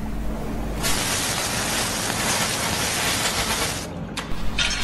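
A small torch hisses as it cuts through a metal chain.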